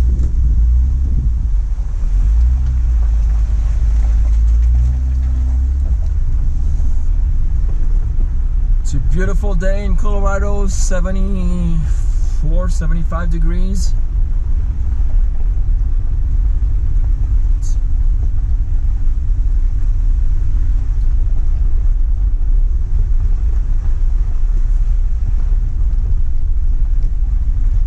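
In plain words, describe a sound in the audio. Tyres crunch and rumble over a rough gravel track.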